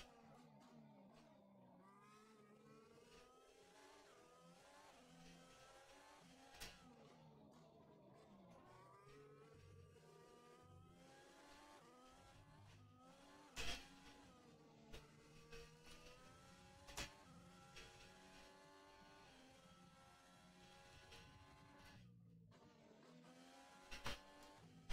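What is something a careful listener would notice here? A racing car engine whines and revs up and down through its gears.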